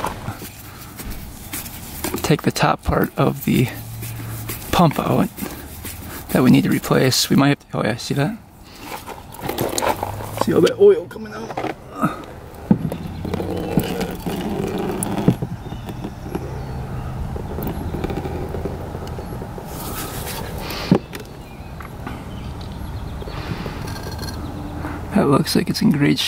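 A metal tool scrapes and taps against a metal housing.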